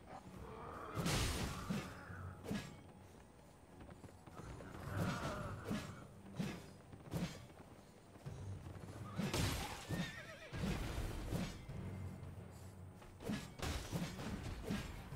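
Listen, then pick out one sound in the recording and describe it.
Heavy weapon blows strike and clang several times.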